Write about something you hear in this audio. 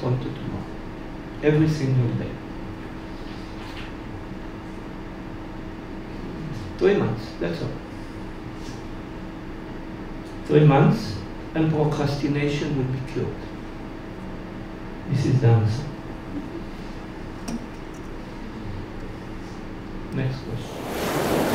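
An older man speaks slowly and calmly into a microphone, with long pauses.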